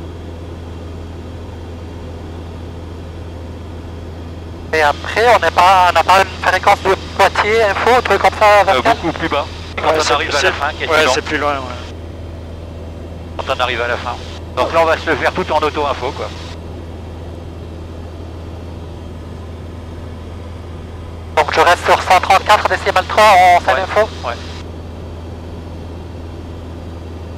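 A small aircraft engine drones steadily inside the cabin.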